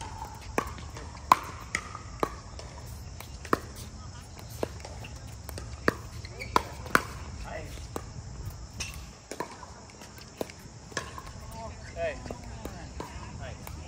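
Paddles hit a plastic ball with sharp, hollow pops in a quick back-and-forth rally outdoors.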